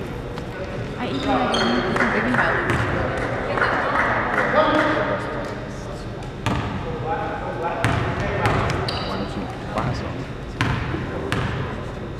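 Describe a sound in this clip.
People talk nearby in an echoing hall.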